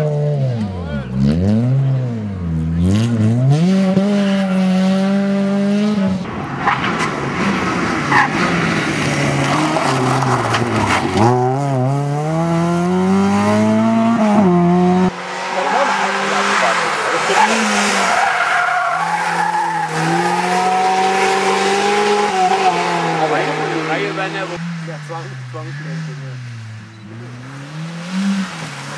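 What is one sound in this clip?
A rally car engine revs hard, rising and falling in pitch.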